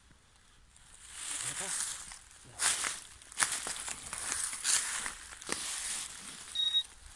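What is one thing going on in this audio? Dry leaves rustle and crunch as hands dig through them.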